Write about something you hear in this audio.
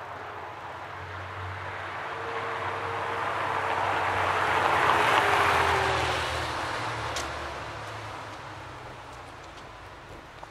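A sports car engine roars as it drives past close by on cobblestones.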